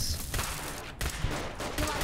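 An energy gun fires with a sharp electric zap.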